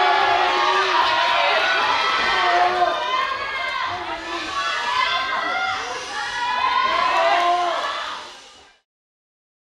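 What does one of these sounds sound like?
Young women chatter and laugh excitedly.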